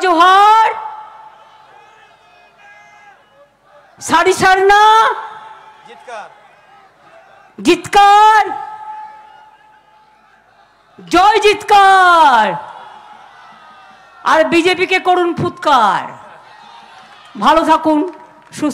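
A woman speaks loudly and forcefully into a microphone over loudspeakers, in short bursts.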